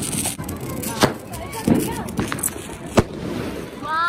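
A firework whooshes up and bursts with sharp bangs.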